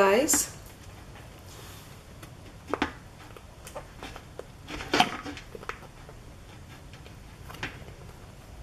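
Hard candies click and snap as they are pried from a soft mould.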